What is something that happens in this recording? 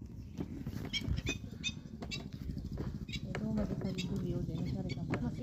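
Cart wheels squeak sharply now and then.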